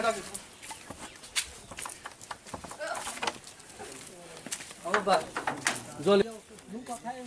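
A wooden door bumps and rattles on its frame.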